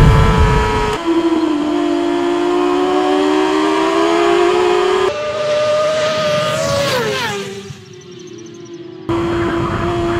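Motorcycles roar past close by, their engine pitch rising and falling.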